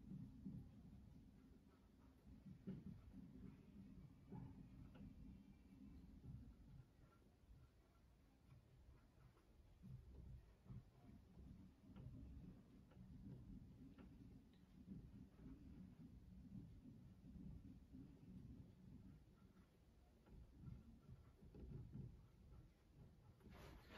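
A marker squeaks and taps faintly on a whiteboard.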